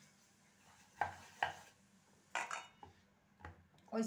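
A rolling pin knocks lightly on a wooden board.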